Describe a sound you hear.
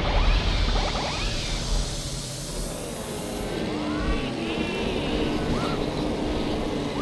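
A toy-like kart engine hums steadily.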